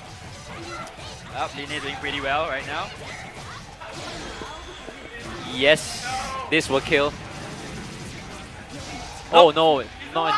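Rapid punches and energy blasts thud and crackle in a video game.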